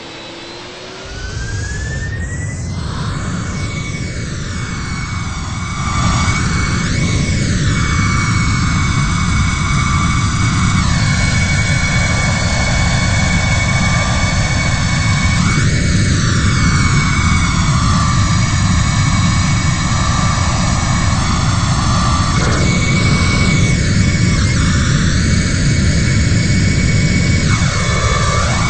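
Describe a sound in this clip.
Jet engines roar and grow louder as an airliner speeds down a runway and lifts off.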